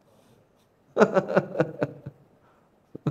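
A man laughs into a microphone.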